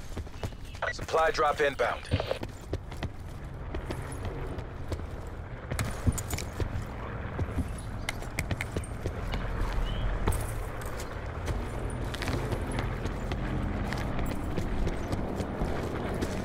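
Footsteps thud steadily on hard ground and rooftops.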